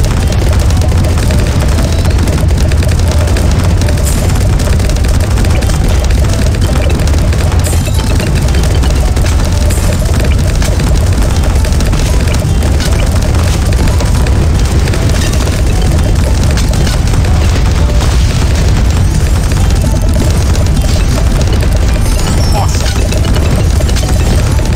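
Game pops and blasts crackle rapidly.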